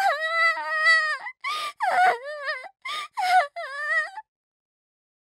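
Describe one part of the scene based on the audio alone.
A young girl speaks tearfully in a high, trembling voice.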